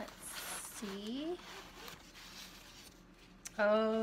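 A paper roll slides out and knocks on a table.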